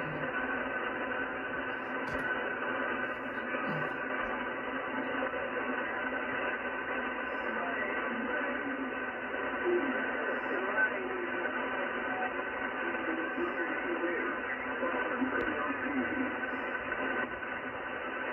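Static hisses and crackles steadily from a radio loudspeaker.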